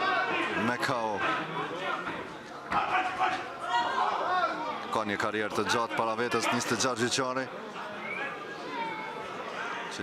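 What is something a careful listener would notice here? Spectators talk and call out nearby.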